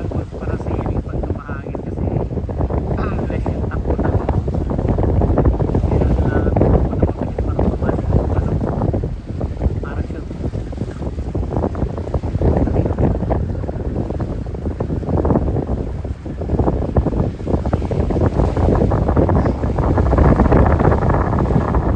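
Wind buffets loudly outdoors, gusting throughout.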